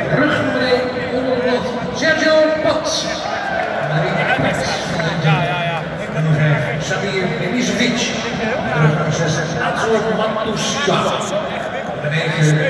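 A large stadium crowd sings and chants loudly in a wide open space.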